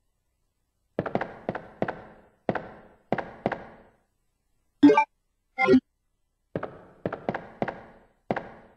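Footsteps thud on a hard floor with a short echo.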